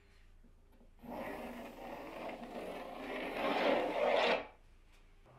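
A pencil scratches across a board.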